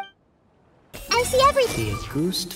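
A bow shot bursts and crackles with magical whooshes.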